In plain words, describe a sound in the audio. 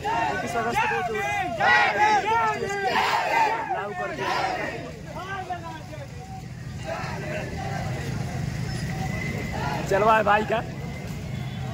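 A crowd of young men chant slogans loudly together outdoors.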